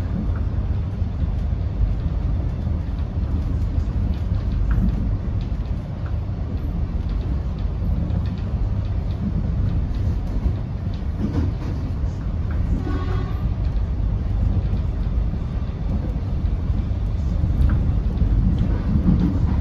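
The bus body rattles and creaks as it rides.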